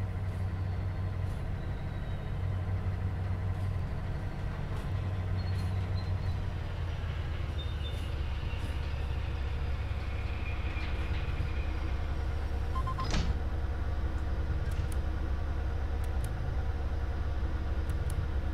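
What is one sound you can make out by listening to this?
Train wheels clank over rail joints.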